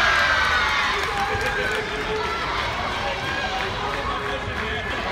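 A crowd of young girls cheers and shouts outdoors.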